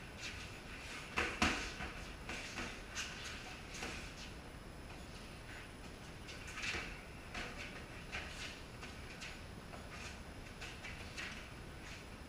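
Sneakers shuffle and squeak on a concrete floor.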